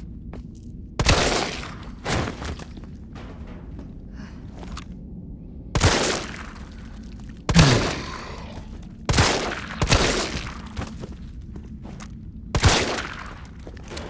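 Pistol shots ring out loudly, one at a time, echoing in a tunnel.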